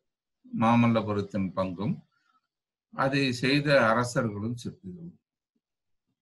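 An elderly man speaks calmly and closely into a microphone.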